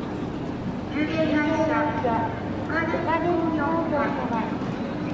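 A group of men call out together outdoors.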